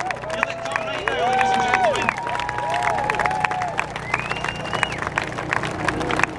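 An airplane engine drones overhead.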